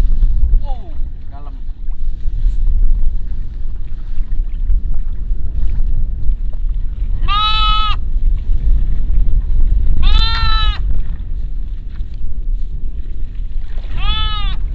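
Water splashes as a person wades through a river.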